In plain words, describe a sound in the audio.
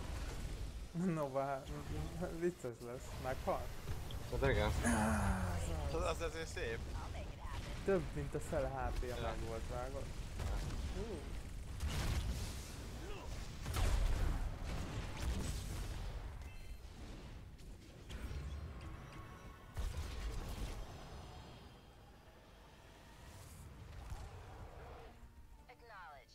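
Video game battle effects crackle and boom.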